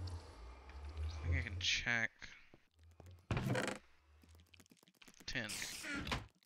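A wooden chest lid creaks open.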